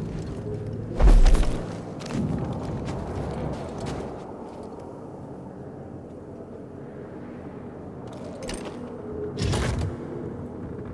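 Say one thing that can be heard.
A heavy metal crate thuds down onto hard ground.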